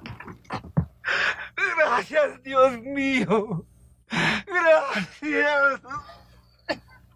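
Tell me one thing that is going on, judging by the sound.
A middle-aged man sings out loudly with feeling.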